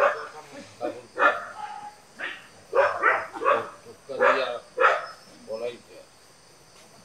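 Men talk with animation nearby.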